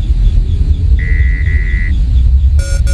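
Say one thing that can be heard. An electronic button beeps once.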